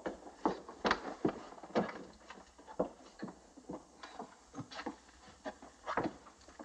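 A heavy bag is set down with a thump.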